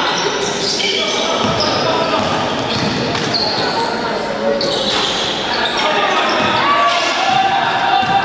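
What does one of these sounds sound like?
Sneakers squeak sharply on a hard court in an echoing hall.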